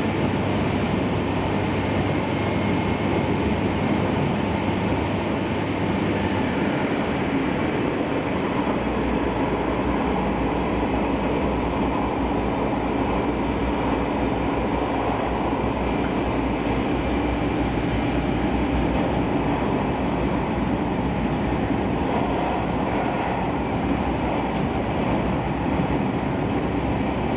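A train's motor hums low and steady.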